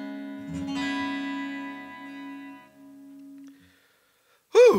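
An electric guitar rings out a chord that slowly fades.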